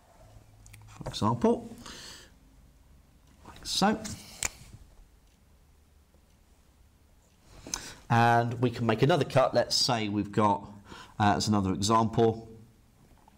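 A man speaks calmly and clearly close to a microphone, explaining.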